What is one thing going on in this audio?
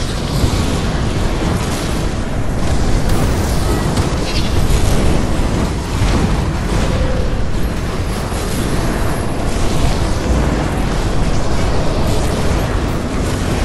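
Heavy blows thud and crash repeatedly.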